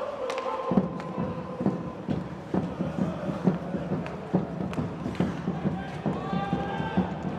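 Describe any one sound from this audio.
Skates scrape and swish across the ice.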